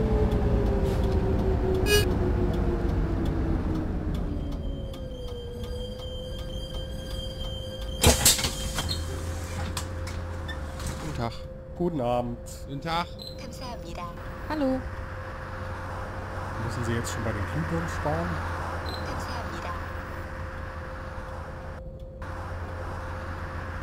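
A bus engine hums, winding down as the bus slows and then idling steadily.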